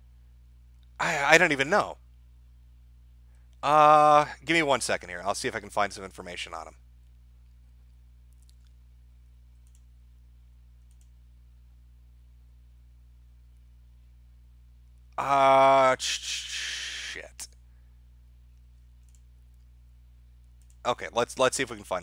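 A man speaks with animation in short bursts through a microphone.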